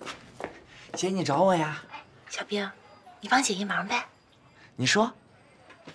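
A young man speaks cheerfully nearby.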